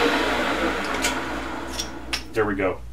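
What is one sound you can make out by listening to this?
A metal chuck clinks as a hand handles it.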